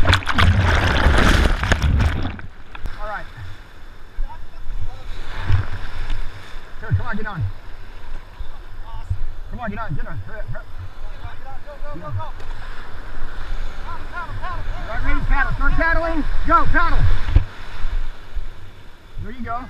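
Surf rushes and splashes loudly close by.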